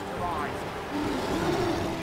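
A waterfall rushes steadily.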